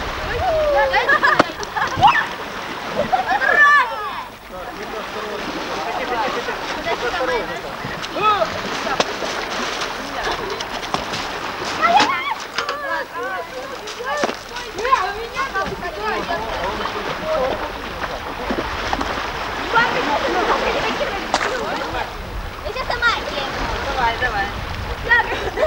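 Children and adults chatter and call out excitedly nearby.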